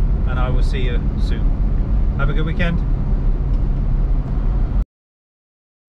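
A car engine hums with a low, steady road rumble from inside the car.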